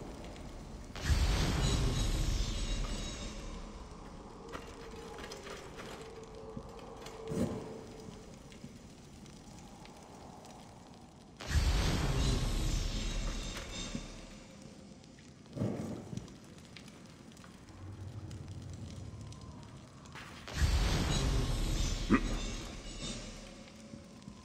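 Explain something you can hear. A fire flares up with a loud roaring whoosh, then slowly dies down.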